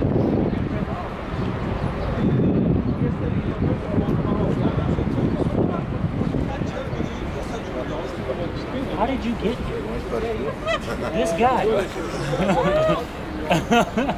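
A crowd of adults chatters outdoors nearby.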